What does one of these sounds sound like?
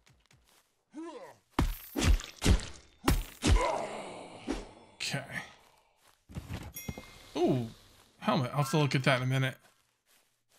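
A man grunts and cries out in combat.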